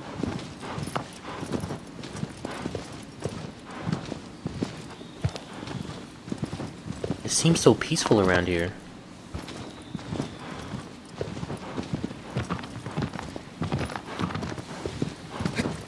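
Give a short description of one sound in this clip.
A horse gallops with steady, rhythmic hoofbeats on soft ground.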